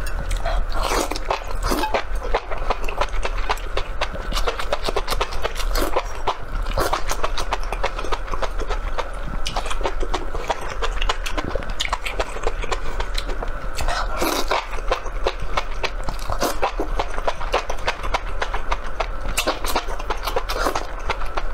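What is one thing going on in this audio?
A man slurps noodles loudly, close to a microphone.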